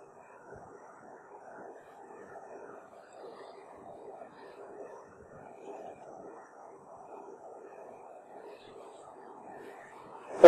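A man speaks calmly and steadily close by.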